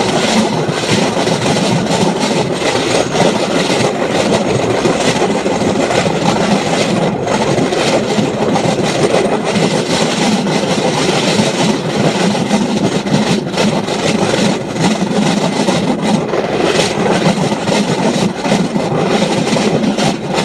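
A vehicle rumbles and rattles steadily along railway tracks at speed.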